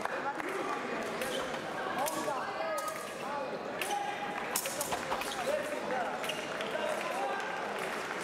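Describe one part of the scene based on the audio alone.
Fencing blades clash and click.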